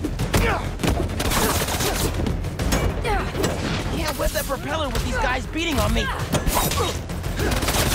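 Punches and kicks land with heavy thuds in a brawl.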